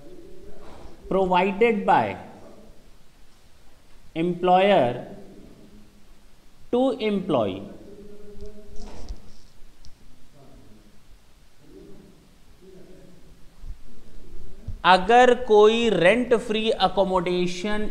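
A man speaks through a microphone, in short bursts and then at length.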